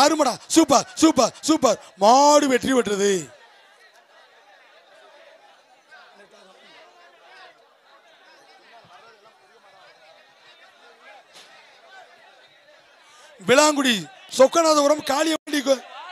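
Men in a large crowd shout loudly.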